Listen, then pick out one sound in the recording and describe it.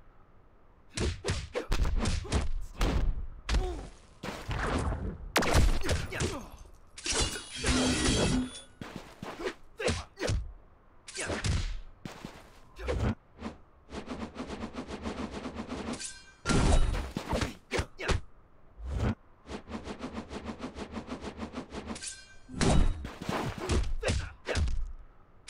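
Punches and kicks land with heavy thuds and smacks in quick bursts.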